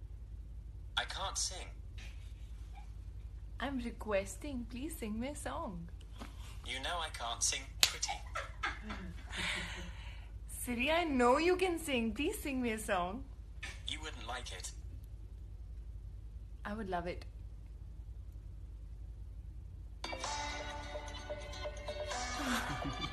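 A young woman speaks playfully into a phone, close by.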